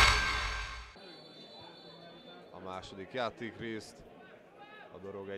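A crowd murmurs faintly in a stadium.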